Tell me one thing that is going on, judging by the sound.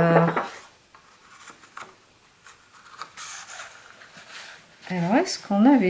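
A sheet of paper rustles as a hand handles it.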